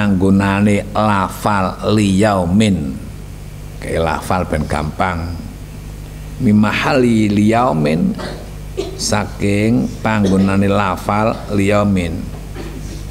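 An elderly man chants in a drawn-out voice through a microphone, in an echoing hall.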